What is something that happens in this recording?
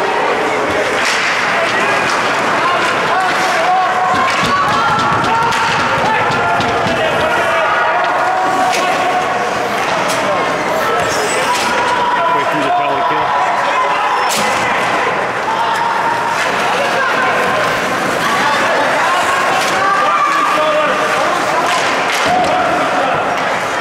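A crowd of spectators chatters and shouts in a large echoing rink.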